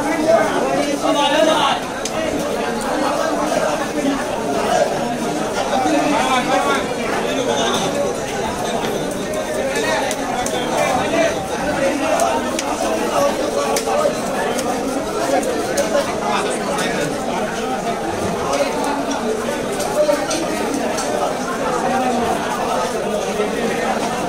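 A knife scrapes scales off a fish.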